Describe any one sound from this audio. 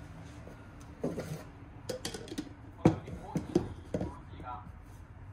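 A plastic coffee press knocks and clicks against a glass carafe.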